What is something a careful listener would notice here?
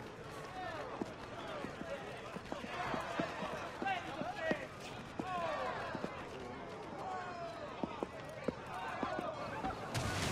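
Footsteps tap on a hard street.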